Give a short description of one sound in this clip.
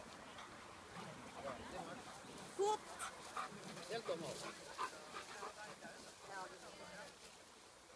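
A woman talks encouragingly to a dog nearby, outdoors.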